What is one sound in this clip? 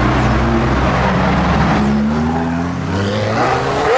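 Another sports car engine revs and rumbles close by.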